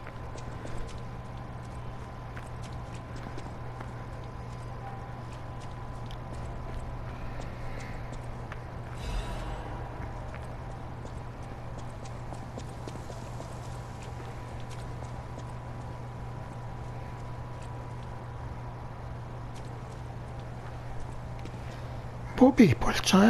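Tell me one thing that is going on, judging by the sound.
Footsteps tap on stone cobbles.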